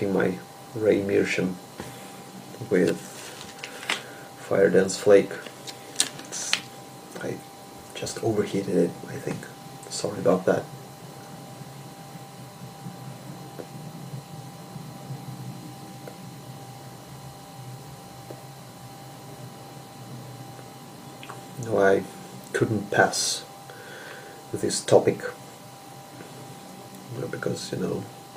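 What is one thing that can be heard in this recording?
A young man talks calmly and close by.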